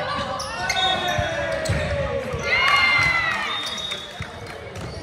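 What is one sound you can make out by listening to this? Young women shout and cheer loudly in a large echoing hall.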